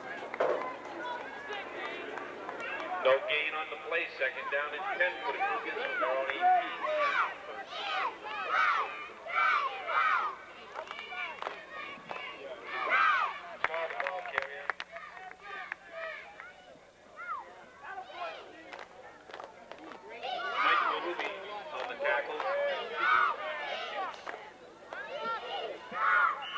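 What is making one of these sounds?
Children's voices chatter and call out nearby outdoors.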